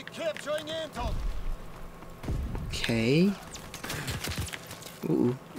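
Gunshots boom close by.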